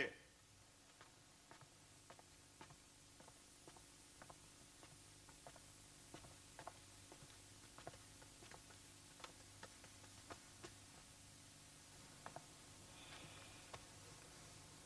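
Footsteps patter softly on a hard floor.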